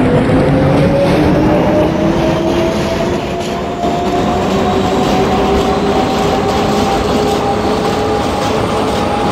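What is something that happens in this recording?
A subway train rumbles and rattles along the tracks.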